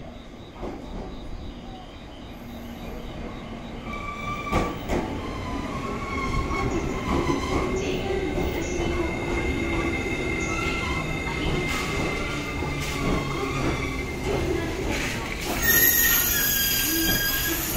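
A train rumbles loudly as it pulls into the station.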